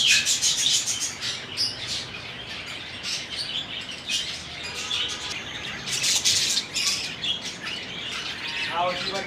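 Small birds chirp and twitter busily.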